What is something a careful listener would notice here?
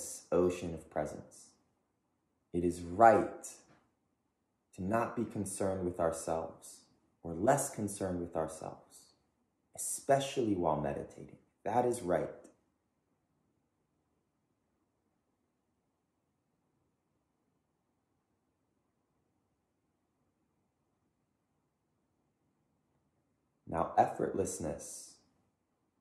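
A man speaks calmly and slowly, close by, with long pauses.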